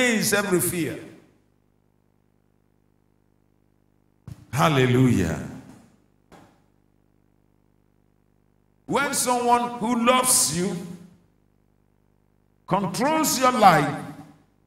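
A middle-aged man speaks with animation into a microphone, in bursts with pauses.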